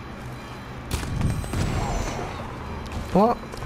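An explosion booms with a deep thud.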